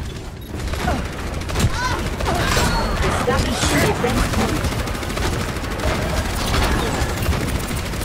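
A video game energy gun fires in rapid bursts.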